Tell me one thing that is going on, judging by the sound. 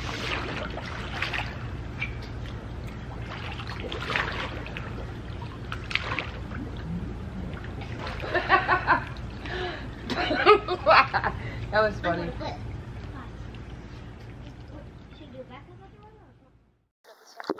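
Water splashes as people swim in a pool.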